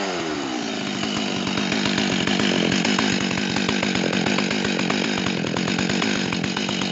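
A chainsaw engine idles loudly with a steady rattling putter, close by.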